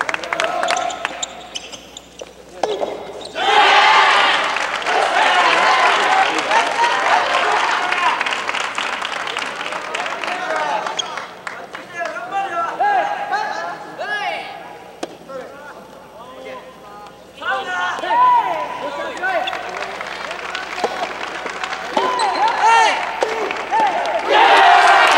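Young men shout loudly in a large echoing hall.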